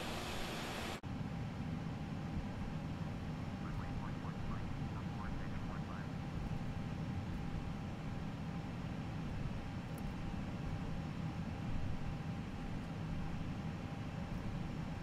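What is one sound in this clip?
A jet airliner's engines rumble low and muffled from inside the cockpit.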